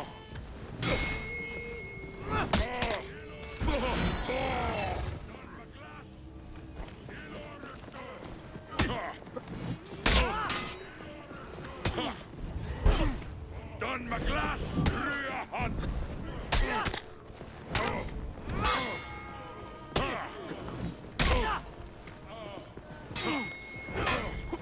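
Steel swords clash and ring in a fight.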